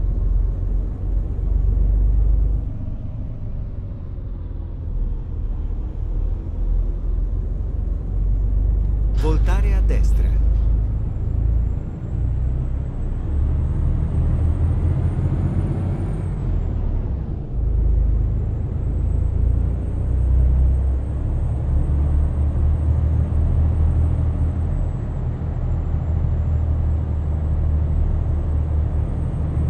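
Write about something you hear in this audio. A truck engine rumbles low and steady, rising and falling as it drives.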